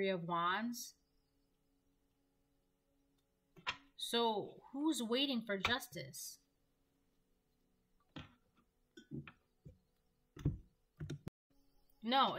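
Cards shuffle and tap together.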